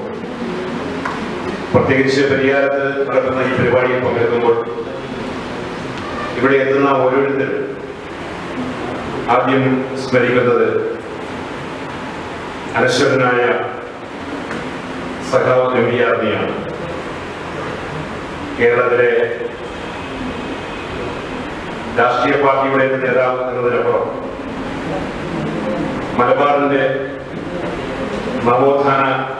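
A middle-aged man speaks loudly into a microphone in short, forceful bursts, heard through a loudspeaker in an echoing hall.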